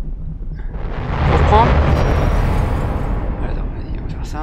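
A loud whoosh rises and fades as a spaceship passes through a gate.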